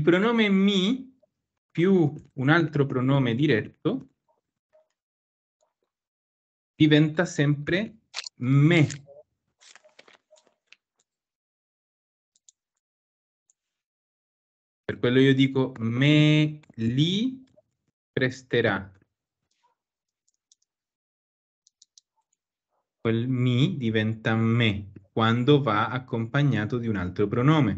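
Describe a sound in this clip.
A man speaks calmly through an online call, pausing often.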